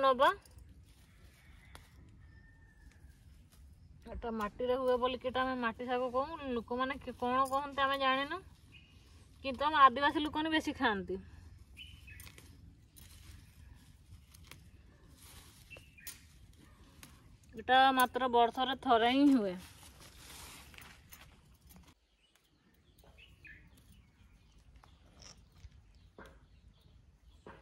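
Leaves rustle and snap softly as plants are plucked by hand.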